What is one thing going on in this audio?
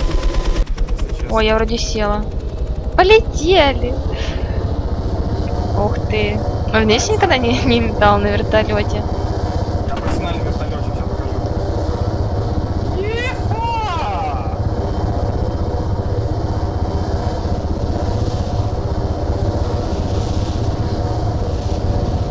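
A helicopter's rotor and engine drone steadily.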